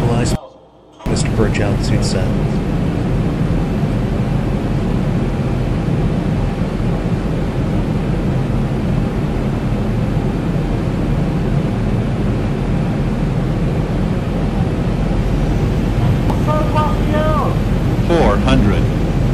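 Jet engines roar steadily in a low rumble.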